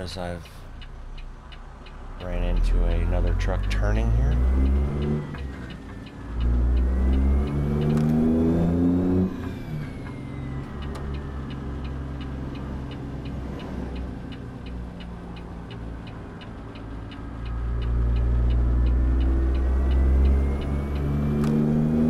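A heavy truck engine rumbles close by, revving up and dropping back as it shifts gears.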